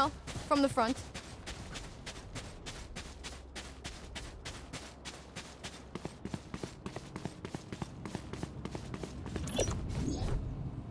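Quick footsteps patter along steadily.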